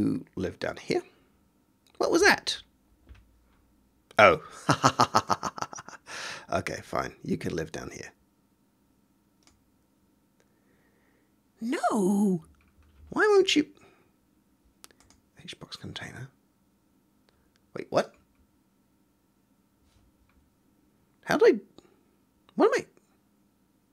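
A man talks casually into a close microphone, with pauses.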